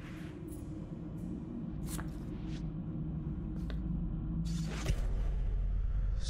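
Paper crinkles as it is handled.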